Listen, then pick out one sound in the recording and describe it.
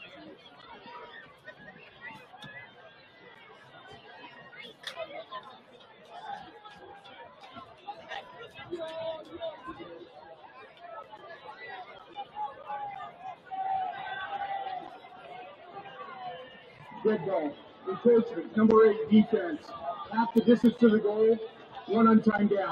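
A crowd of young men chatters and calls out outdoors at a distance.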